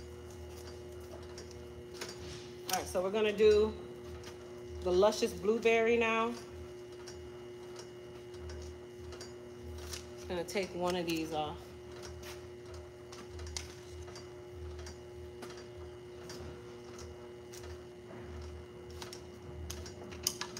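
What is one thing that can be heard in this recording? Plastic parts click and tap as a woman handles a machine.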